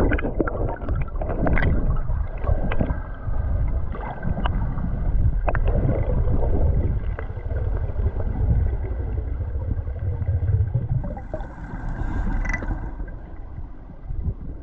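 Water rumbles and swirls, heard muffled from underwater.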